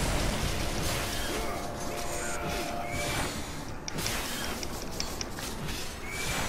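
Blades swish and clash amid loud video game sound effects.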